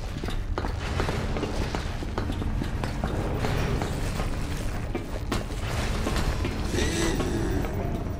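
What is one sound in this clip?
Footsteps thud on a metal floor.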